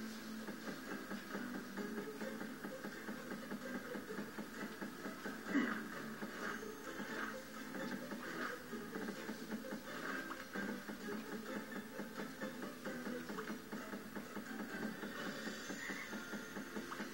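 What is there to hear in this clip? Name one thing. Video game music plays from a television speaker.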